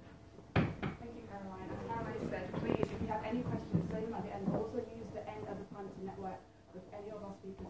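A young woman speaks calmly to a room.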